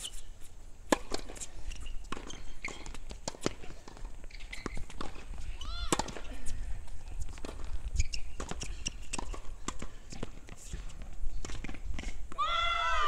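Tennis balls are struck by rackets with sharp pops, outdoors.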